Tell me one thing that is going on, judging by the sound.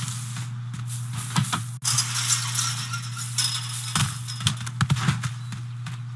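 A chain-link fence rattles as someone climbs over it.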